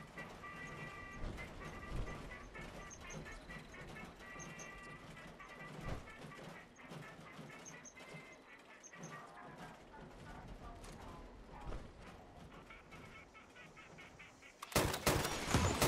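Heavy armoured footsteps thud and clank on a road.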